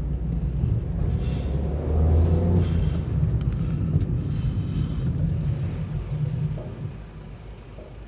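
A car engine rumbles from inside the car as it drives, then quietens as the car slows to a stop.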